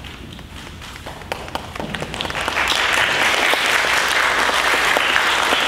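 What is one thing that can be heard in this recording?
An audience applauds in a large echoing hall, starting with scattered claps and swelling.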